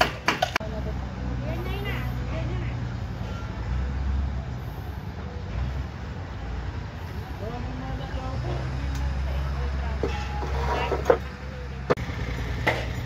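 A loader's diesel engine rumbles steadily.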